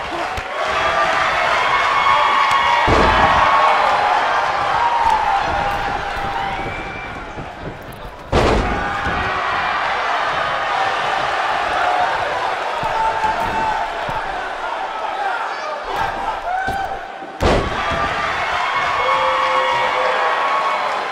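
A large crowd cheers and shouts throughout in an arena.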